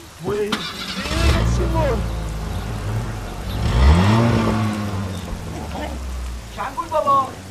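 A car engine rumbles close by.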